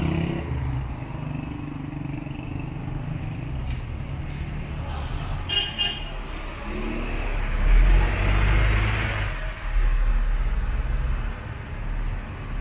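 Traffic rumbles low and steady in the distance.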